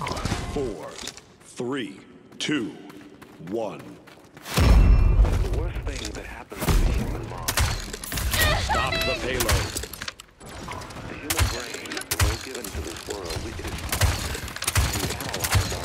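A crossbow fires bolts with sharp twangs.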